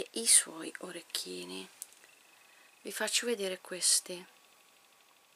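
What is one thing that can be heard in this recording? A middle-aged woman speaks softly and closely.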